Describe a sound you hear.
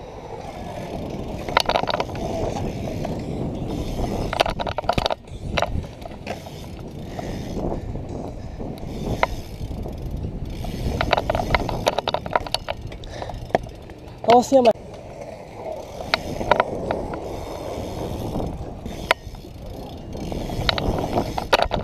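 Bike tyres roll and rumble over concrete.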